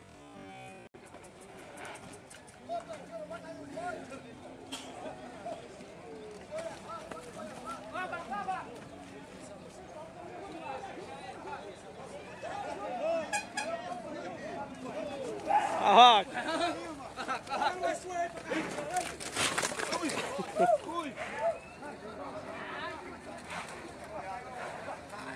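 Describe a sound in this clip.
Men shout and call out outdoors, some close and some farther off.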